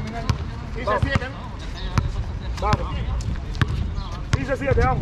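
A basketball bounces repeatedly on a hard outdoor court.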